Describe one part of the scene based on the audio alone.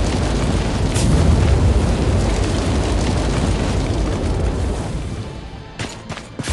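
A fire roars.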